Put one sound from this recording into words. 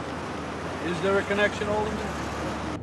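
A middle-aged man speaks briefly close by.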